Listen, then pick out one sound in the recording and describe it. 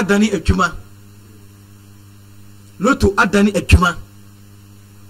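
A man speaks into a microphone in short bursts.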